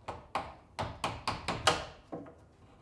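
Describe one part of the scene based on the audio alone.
A hammer taps quickly on wood.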